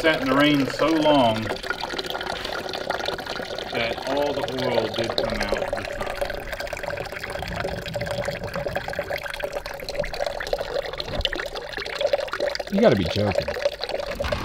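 Water trickles into a plastic bucket.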